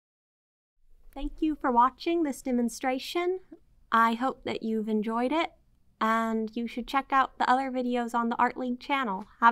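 A young woman speaks calmly and clearly, close to a microphone.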